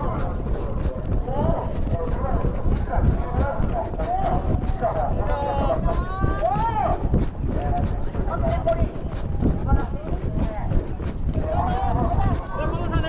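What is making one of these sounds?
Men and women shout encouragement from the trackside.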